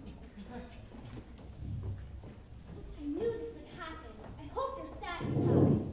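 Footsteps tap across a wooden stage.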